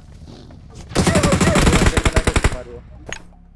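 Rapid gunshots fire in a quick burst.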